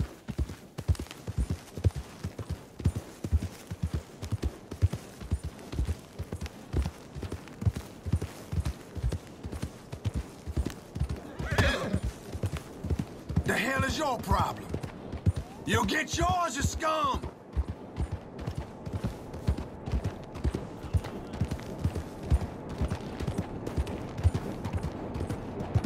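Horse hooves thud in a steady gallop on soft ground.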